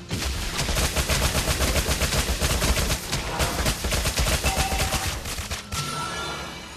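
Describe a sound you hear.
Rapid magic blasts and hits crackle in a fast fight.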